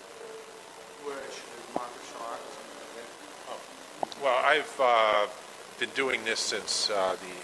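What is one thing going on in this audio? A young man speaks loudly and close to a microphone.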